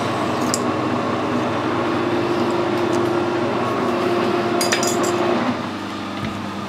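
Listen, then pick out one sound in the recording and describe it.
A lathe motor hums and whirs steadily, then winds down.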